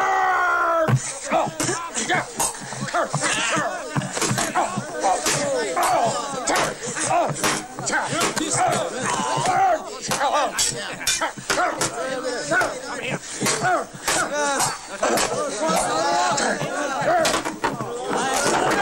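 Men shout and yell fiercely in a fight.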